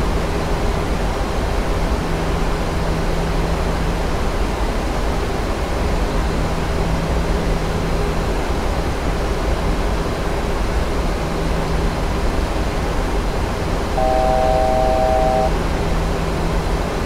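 A jet engine drones steadily with a low rumble.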